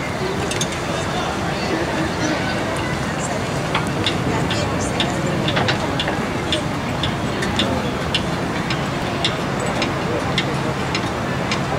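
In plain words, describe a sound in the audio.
Drums beat steadily along with the ensemble.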